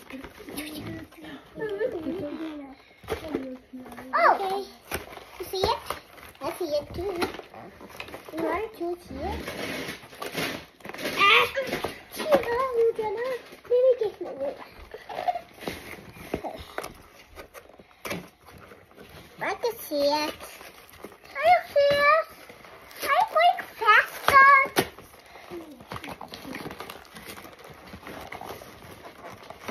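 Cardboard packaging rustles and taps as a box is handled.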